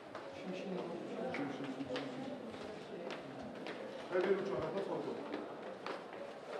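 Several men talk in low voices nearby.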